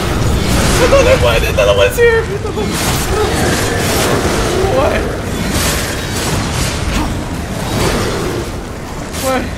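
Fiery explosions burst and roar repeatedly.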